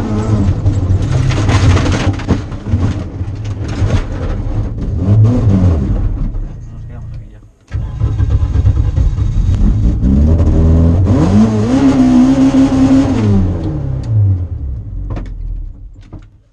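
Gravel sprays and rattles under the car's tyres.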